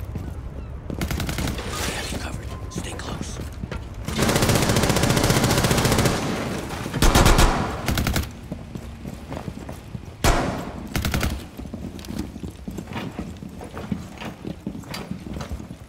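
Footsteps patter as people run on hard floors and stairs.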